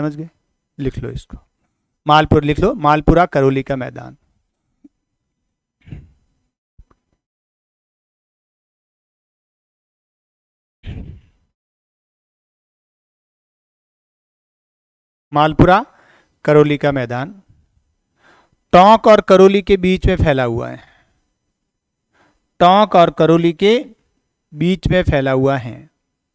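A middle-aged man speaks calmly into a clip-on microphone, pausing often.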